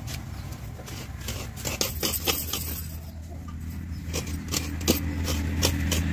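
A spoon clinks against a metal plate.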